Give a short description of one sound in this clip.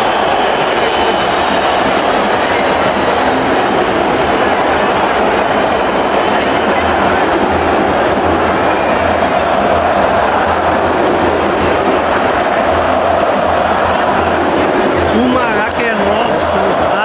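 A large stadium crowd sings and chants loudly in a vast open space.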